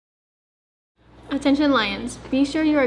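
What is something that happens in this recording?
A second young woman speaks with animation into a close microphone.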